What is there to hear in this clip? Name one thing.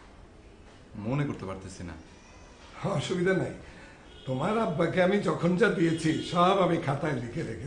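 A middle-aged man talks with animation.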